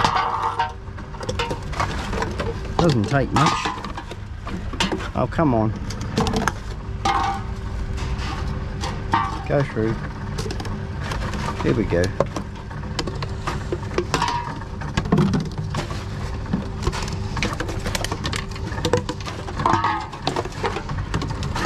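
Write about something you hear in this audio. Plastic bottles and metal cans clink and crackle as they are handled.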